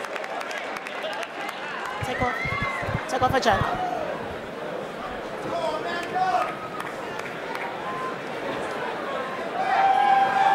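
A large crowd murmurs and calls out in a big echoing hall.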